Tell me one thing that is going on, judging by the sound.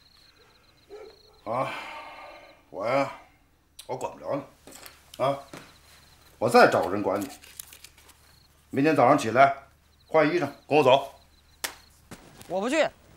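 A middle-aged man speaks quietly and haltingly.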